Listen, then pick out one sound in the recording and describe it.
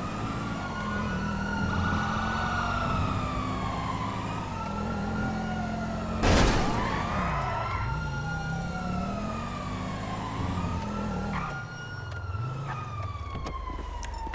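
A car engine roars and hums steadily as the car drives.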